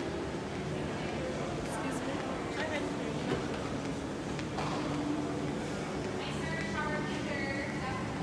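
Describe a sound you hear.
Footsteps tap on a tiled floor.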